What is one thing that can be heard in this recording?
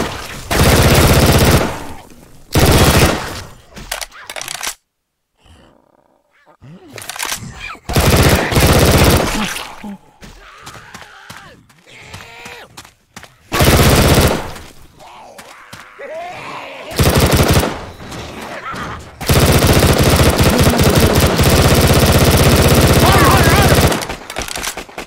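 A rapid burst of gunfire rings out in bursts, close by.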